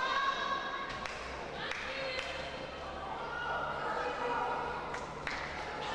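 A volleyball is struck with sharp thuds in a large echoing hall.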